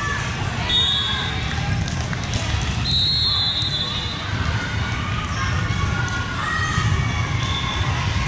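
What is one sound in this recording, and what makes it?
A volleyball is struck with a thump.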